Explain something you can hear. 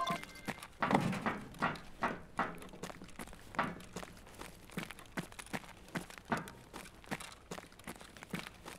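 Footsteps thud at a steady walking pace on a hard floor.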